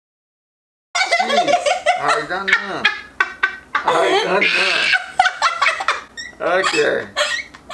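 A young woman laughs loudly and shrieks nearby.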